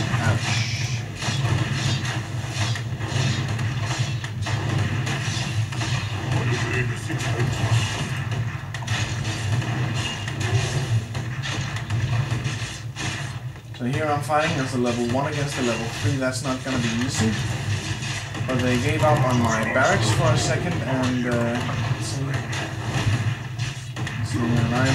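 Swords clash and blasts go off in a computer game's battle, heard through loudspeakers.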